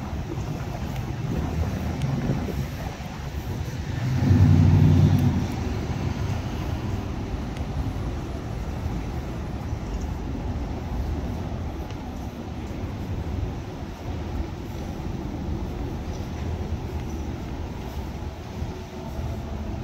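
Traffic rumbles steadily nearby, outdoors in a city street.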